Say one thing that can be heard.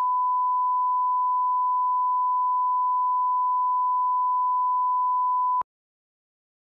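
A steady high test tone sounds.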